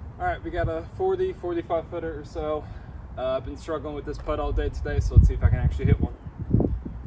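A young man talks calmly outdoors.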